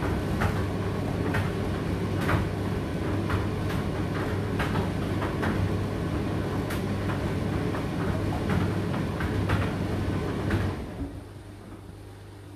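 A condenser tumble dryer runs with a low hum.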